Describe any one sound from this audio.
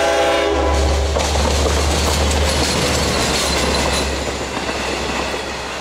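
A passenger train rumbles and clatters past close by.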